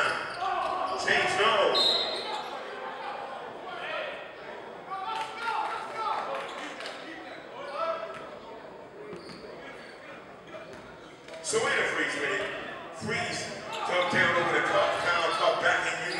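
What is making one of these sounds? Men shout and call out across a large echoing gym.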